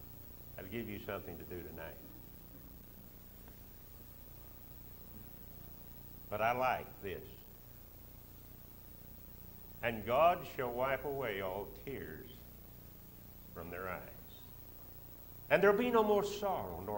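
An elderly man speaks slowly into a microphone, with pauses, in a large echoing hall.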